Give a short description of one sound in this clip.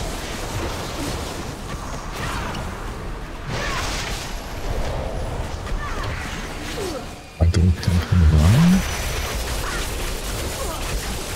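Game spell effects crackle and whoosh.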